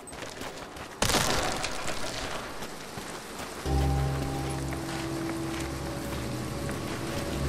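Wind blows steadily through a cave.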